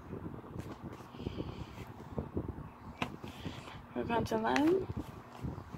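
A plastic case slides across fabric.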